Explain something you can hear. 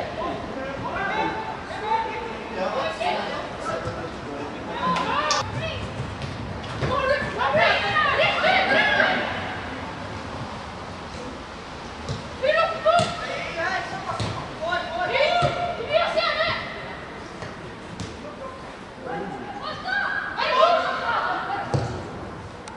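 Young men shout to each other across an open pitch.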